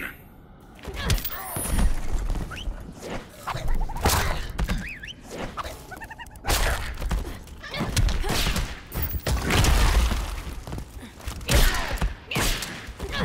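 Punches and kicks land with heavy thuds and blasts.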